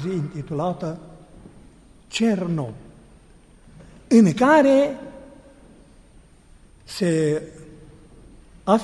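A man chants in short, sung phrases in an echoing hall.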